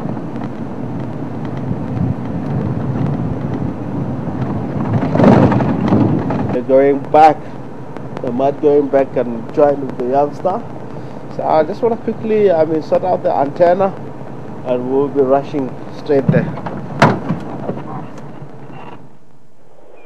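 A vehicle engine rumbles as it drives along a bumpy track.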